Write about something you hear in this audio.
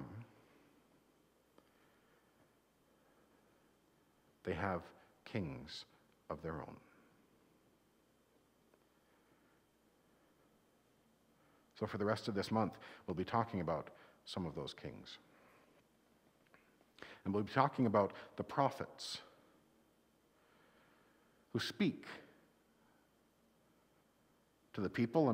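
A middle-aged man speaks with animation in short bursts, with pauses between them.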